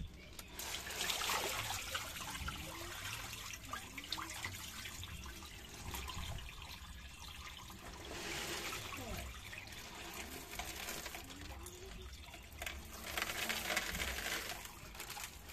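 Water splashes out of a tipped plastic tub onto pavement.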